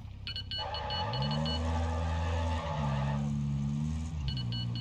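A car engine hums and revs up as the car drives away.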